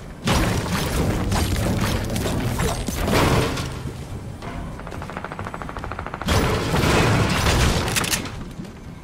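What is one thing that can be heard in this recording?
A treasure chest bursts open with a loud shimmering chime.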